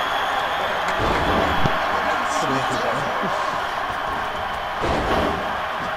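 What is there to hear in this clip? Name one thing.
Bodies thud heavily onto a wrestling ring.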